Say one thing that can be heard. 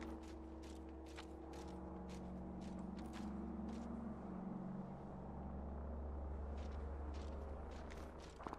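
Footsteps crunch quickly on snow.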